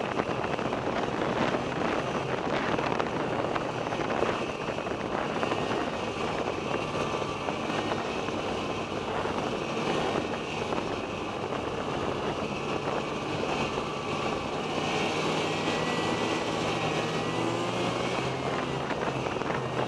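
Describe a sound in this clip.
A snowmobile engine drones steadily up close.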